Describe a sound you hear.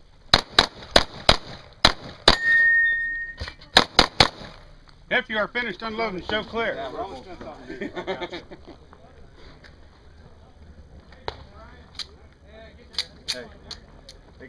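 Pistol shots crack rapidly outdoors, one after another.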